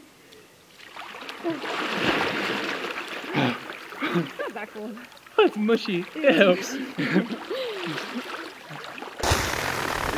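Water splashes as swimmers move about.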